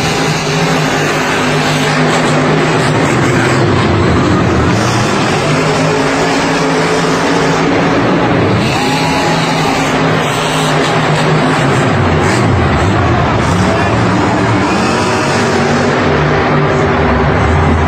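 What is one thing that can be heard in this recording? A large crowd cheers in a big echoing arena.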